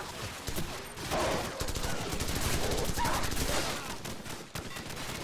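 Rifle shots ring out in rapid bursts.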